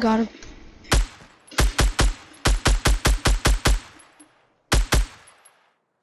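A rifle fires a rapid series of loud shots.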